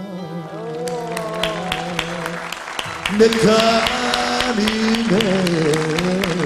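A middle-aged man sings into a microphone.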